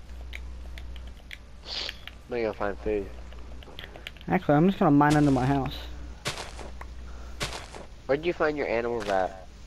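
Dirt crunches in short bursts as blocks are dug.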